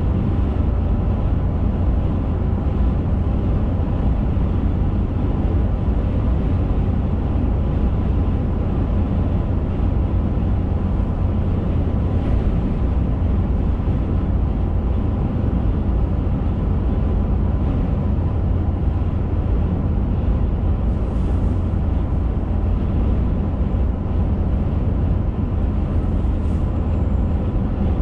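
Tyres roar steadily on a paved road.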